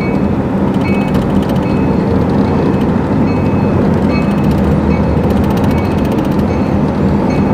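A freight train rumbles along the tracks nearby.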